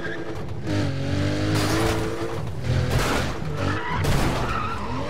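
A car smashes through a wooden barrier with a crash.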